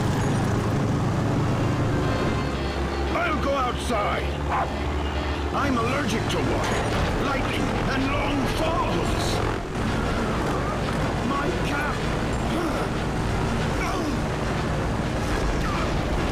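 Rain and wind rush around a plane.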